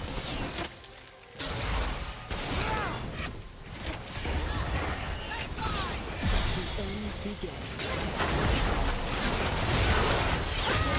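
Spell effects whoosh, crackle and explode in a fast game fight.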